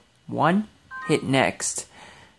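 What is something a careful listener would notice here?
A handheld game console gives a short electronic beep.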